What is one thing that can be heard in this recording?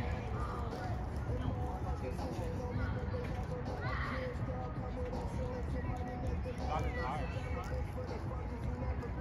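Young men call out to each other at a distance.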